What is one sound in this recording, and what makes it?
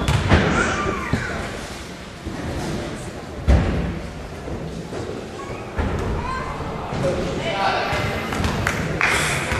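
Spectators chatter and call out nearby.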